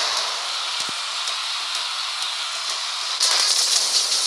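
A flamethrower roars in a steady hissing blast.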